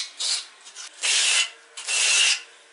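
A notched trowel scrapes mortar across a wall in long rasping strokes.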